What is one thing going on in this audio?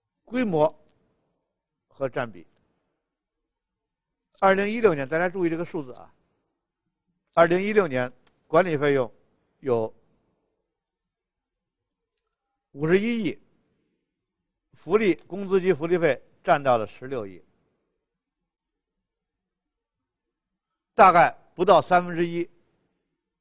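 A middle-aged man speaks calmly into a headset microphone, in short phrases with pauses.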